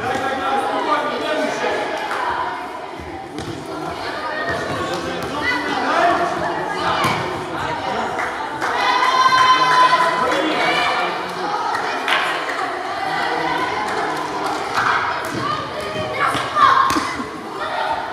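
A ball thuds against the floor as it is kicked.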